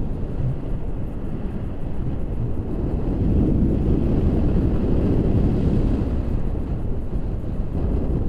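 Wind rushes loudly and steadily past close by.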